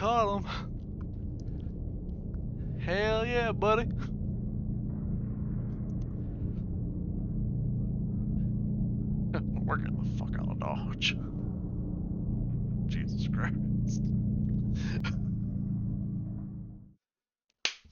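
A spaceship engine rumbles with a steady low roar.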